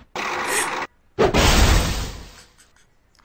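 A wrecking ball slams into a brick wall with a heavy thud.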